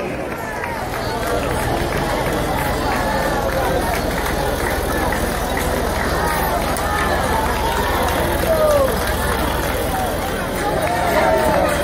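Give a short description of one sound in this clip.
A tractor engine rumbles steadily as it passes.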